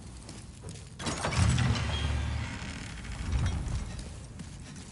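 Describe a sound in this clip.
A heavy wooden door creaks and swings open with a low rumble.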